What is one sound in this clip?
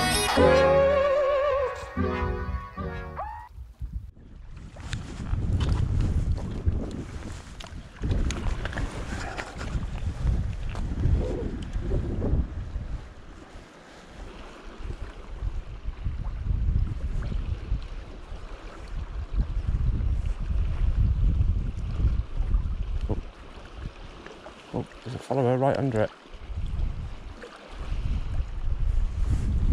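Sea water laps gently against rocks.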